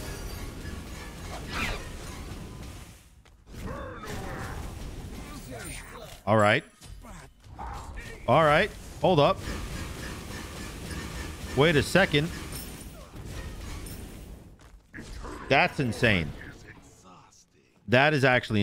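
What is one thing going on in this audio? Video game effects clash and chime.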